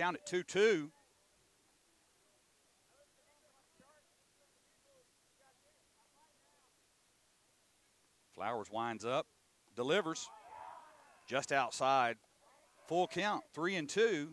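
Young men shout and chant loudly.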